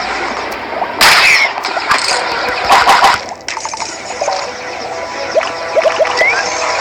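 Laser zaps and pops ring out in quick bursts.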